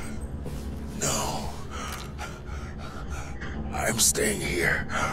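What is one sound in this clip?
A man speaks in a strained, pained voice close by.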